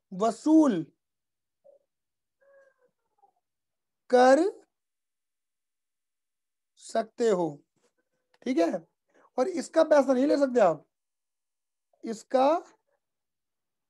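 A young man speaks calmly into a close microphone, in short phrases with pauses.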